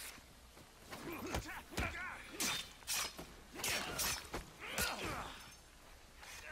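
A man grunts and groans in pain.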